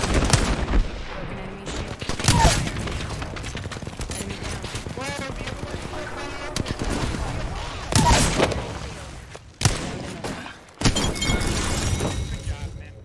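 Gunshots from a video game pistol crack out.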